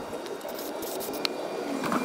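An aerosol can sprays with a short hiss.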